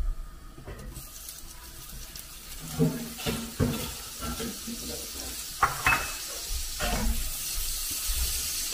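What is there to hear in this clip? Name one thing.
Butter sizzles in a hot pan.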